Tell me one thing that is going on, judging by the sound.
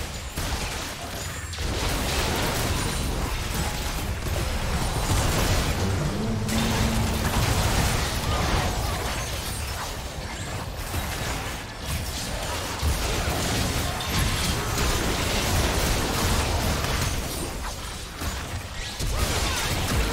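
Video game spells crackle and blast during a fight.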